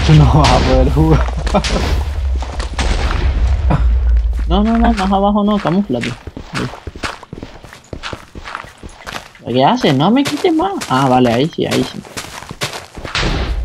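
Dirt crunches in quick, repeated bursts as it is dug out.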